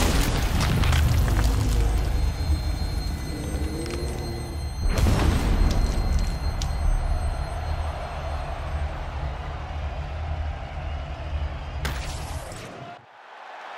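A crowd roars in a large arena.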